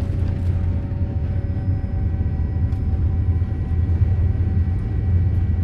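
Wheels rumble and thump on the runway.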